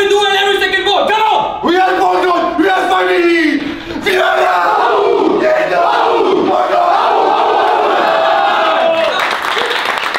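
A man speaks loudly and with energy to a group at close range.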